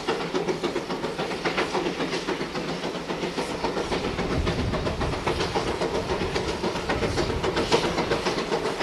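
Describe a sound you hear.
Train wheels clank and rumble on the rails.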